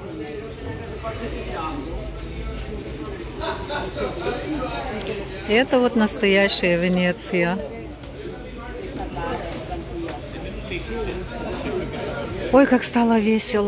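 People chatter in the background outdoors.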